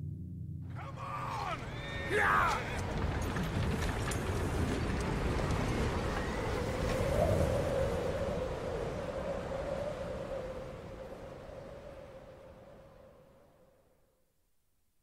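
Strong wind howls and slowly fades away.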